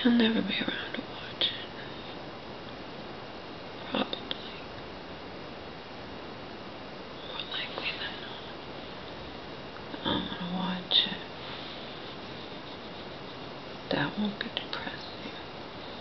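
A woman speaks softly in short, scattered bursts close by.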